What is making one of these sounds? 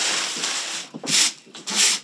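Metal pots clatter on a stove.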